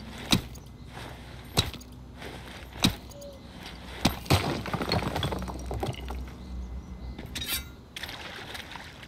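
A game character rummages through rustling bushes.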